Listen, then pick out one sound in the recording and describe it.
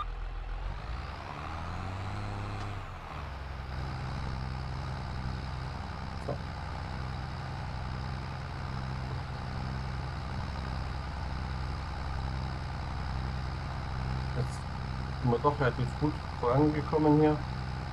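A tractor engine rumbles steadily from inside the cab.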